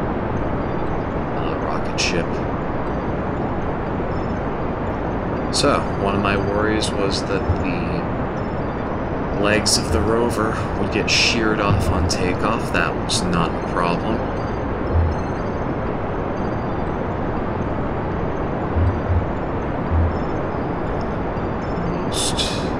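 A rocket engine roars steadily.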